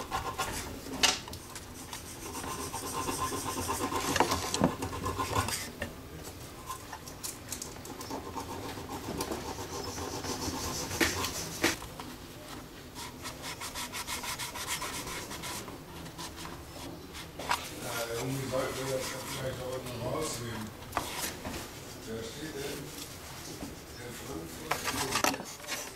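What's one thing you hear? A small metal clamp clicks and knocks against wood.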